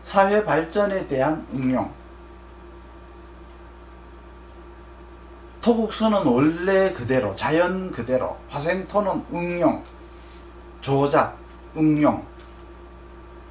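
An older man speaks calmly and with emphasis, close to a microphone.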